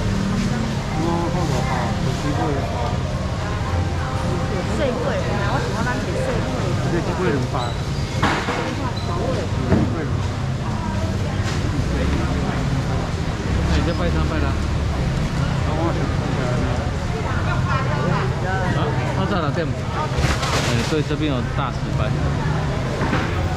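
Several people talk in a busy indoor space.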